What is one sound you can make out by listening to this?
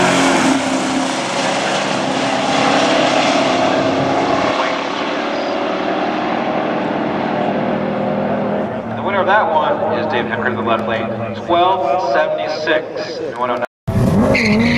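Two race car engines roar loudly as the cars speed away and fade into the distance.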